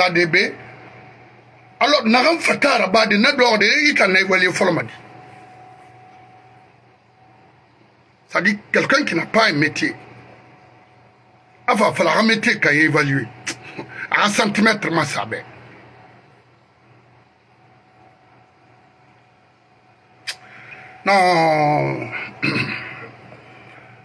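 A middle-aged man speaks with animation into a close microphone, in bursts with pauses.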